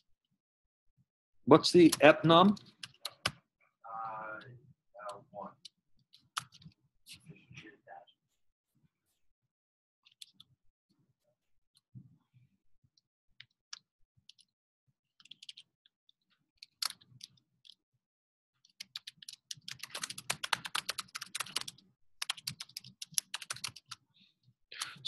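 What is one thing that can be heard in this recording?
Computer keys click in quick bursts of typing.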